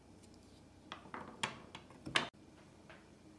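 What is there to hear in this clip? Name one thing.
A clay pot is set down with a few knocks on a hard stand.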